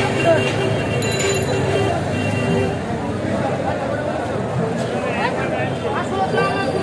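A crowd of men talk and shout over one another outdoors, close by.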